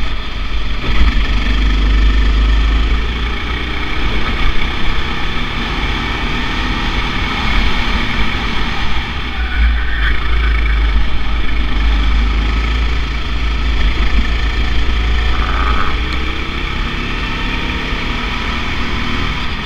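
A kart engine buzzes loudly close by, rising and falling in pitch as it speeds up and slows down.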